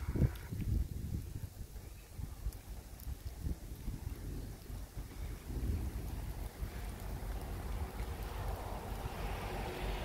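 Leaves rustle in the wind.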